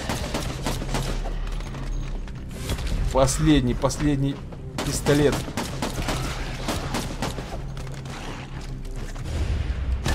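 Guns fire in quick bursts of sharp shots.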